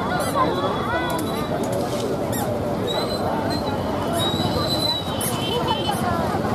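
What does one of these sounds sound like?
A crowd of women chatter all around outdoors.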